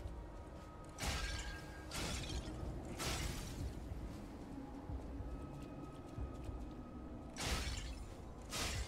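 A blade swings through the air with loud whooshing slashes.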